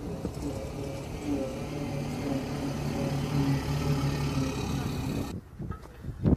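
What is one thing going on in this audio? An engine rumbles as a heavy vehicle drives over rough ground.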